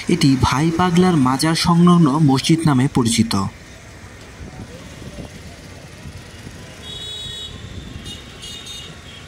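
Auto-rickshaw engines rumble in street traffic nearby.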